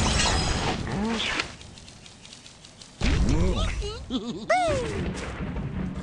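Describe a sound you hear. A cartoon bird squawks in high, bending cries.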